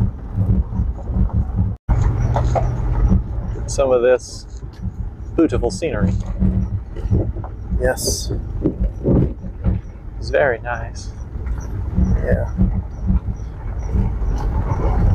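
A vehicle rattles and thumps over bumps.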